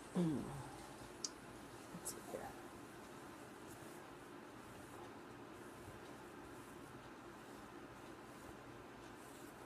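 Fabric rustles as it is unfolded and shaken.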